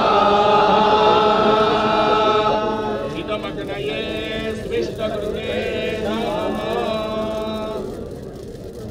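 Men chant together in a steady, drawn-out tone.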